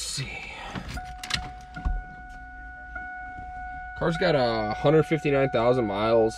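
A car's warning chime sounds steadily.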